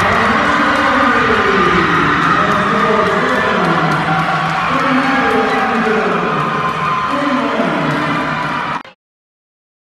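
Young women shriek excitedly up close.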